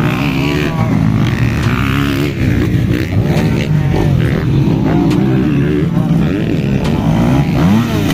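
A motorcycle engine revs up and roars past close by.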